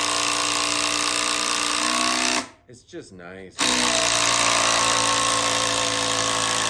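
A power drill whirs steadily, drilling into wood.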